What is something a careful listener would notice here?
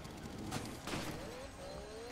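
Explosions crack and boom close by.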